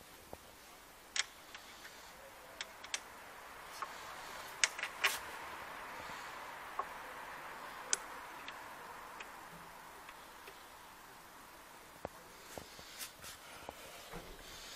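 Metal parts click and clink as hands work on a motorcycle's front brake.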